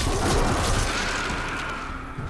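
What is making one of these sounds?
Gunshots crack loudly in quick succession.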